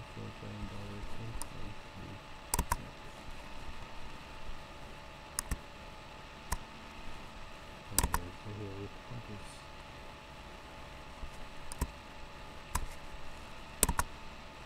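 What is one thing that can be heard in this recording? A young man speaks calmly and close by, through a microphone.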